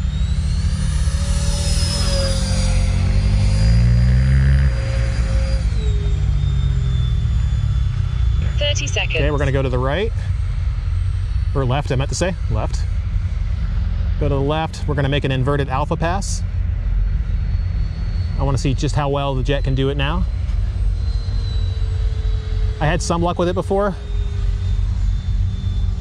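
A model jet engine whines high overhead, its pitch dropping once and later rising again.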